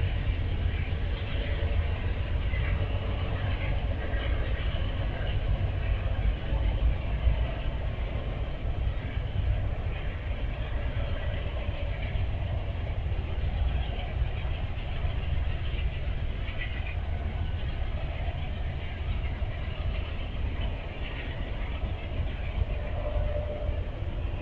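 A long freight train rumbles steadily past.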